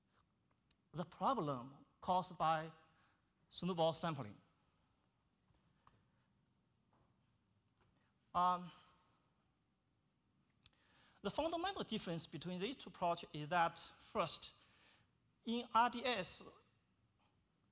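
A man lectures through a microphone in a large room, speaking calmly with pauses.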